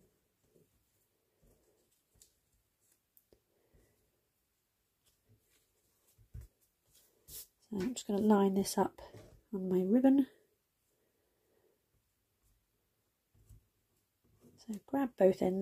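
A ribbon rustles softly as it is handled.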